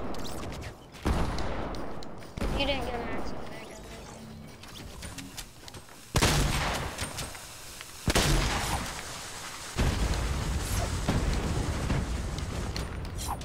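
Wooden walls slam into place in quick bursts of building.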